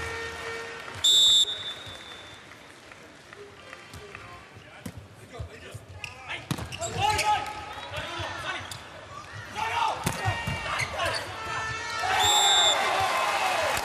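A referee's whistle blows sharply twice.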